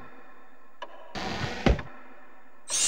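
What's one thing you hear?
A wooden chest lid creaks open.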